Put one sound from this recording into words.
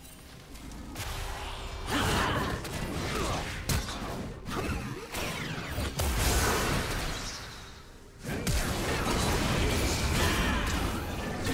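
Video game combat sounds clash and boom in quick bursts.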